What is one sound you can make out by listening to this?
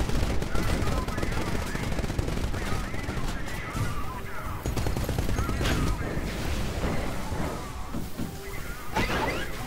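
Heavy mechanical footsteps thud and clank.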